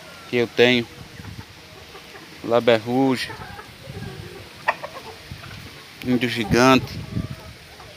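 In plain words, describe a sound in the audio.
A rooster crows loudly nearby, again and again.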